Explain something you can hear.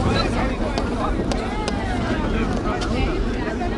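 Train wheels squeal and screech on the rails.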